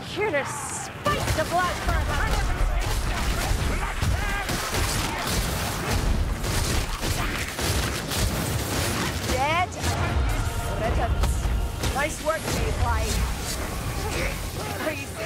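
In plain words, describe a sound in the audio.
Heavy impacts thud and crunch during the fight.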